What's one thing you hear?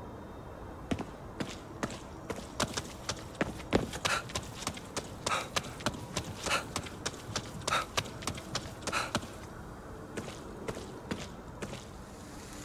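Footsteps splash on wet pavement.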